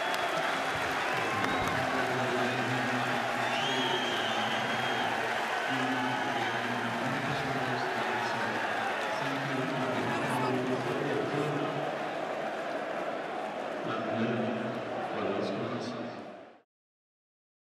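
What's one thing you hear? A large stadium crowd sings and chants loudly.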